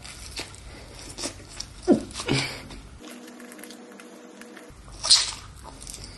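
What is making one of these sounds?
A young man bites and chews crunchy food close by.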